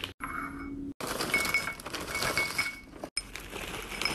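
Crackers rattle as they pour into a bowl.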